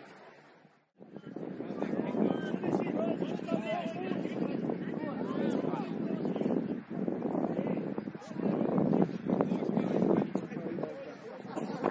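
Several adults talk and call out nearby outdoors.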